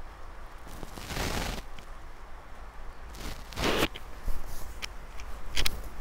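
Fabric rustles and swishes as it is handled.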